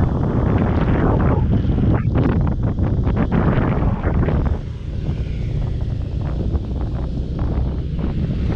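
Wind rumbles hard against the microphone while riding.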